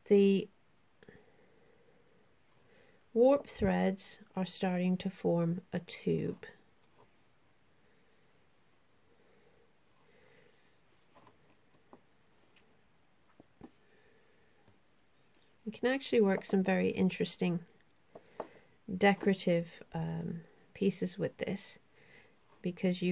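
Threads rustle softly as they are handled.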